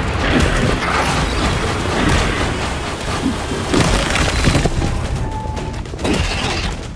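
Magic blasts crackle and whoosh in a fight.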